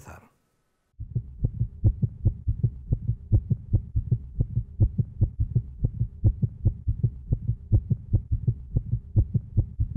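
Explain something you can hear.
A rapid heartbeat thumps steadily through an ultrasound monitor.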